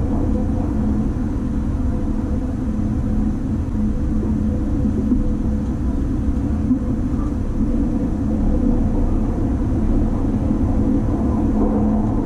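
A train rumbles and hums steadily as it moves along the track.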